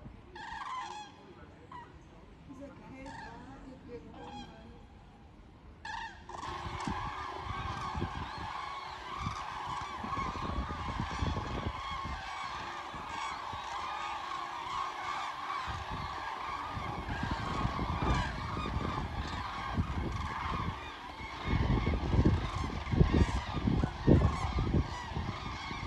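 A flock of geese honks overhead, at first a few calls and then a loud, steady chorus.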